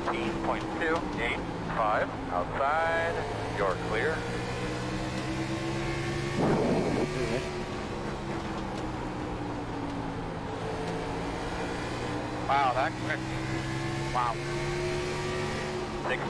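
A race car engine drones steadily, rising and falling in pitch.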